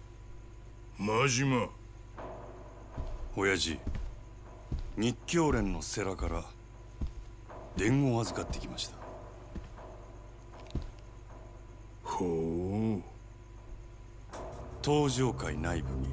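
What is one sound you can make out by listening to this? A second man answers in a calm, deep voice.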